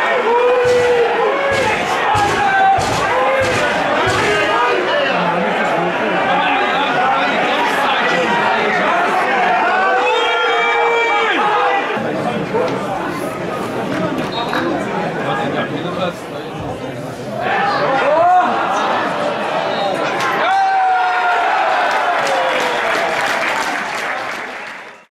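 A large crowd cheers and shouts outdoors in a stadium.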